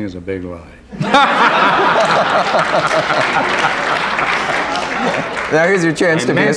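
Several men laugh heartily.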